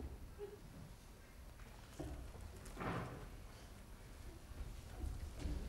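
Bare feet thud softly on a wooden stage.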